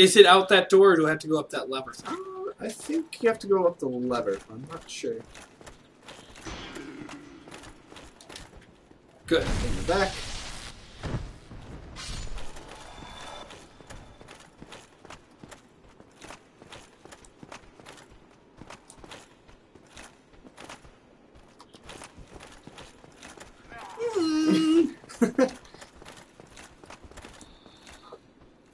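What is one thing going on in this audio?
Armoured footsteps clank steadily.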